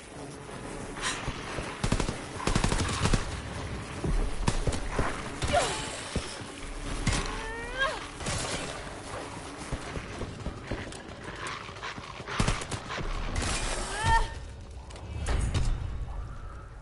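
A pistol fires in rapid shots.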